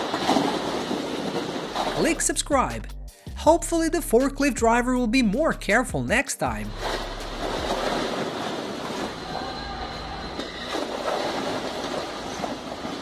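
Stacks of plastic crates topple and crash to the floor with a clatter.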